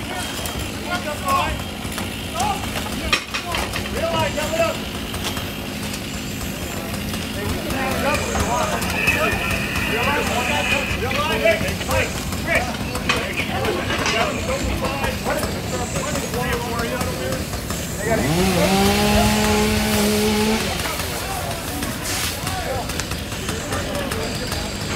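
Men shout and talk outdoors.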